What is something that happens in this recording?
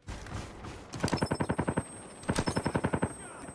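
A handheld targeting device beeps in quick bursts.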